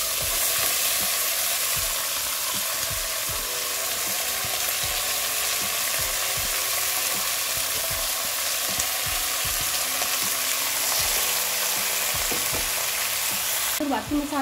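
A spatula stirs and scrapes through food in a metal pot.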